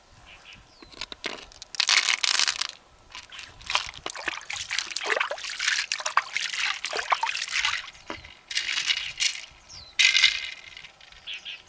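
Small beads rattle and clatter as hands pour and stir them in a shell.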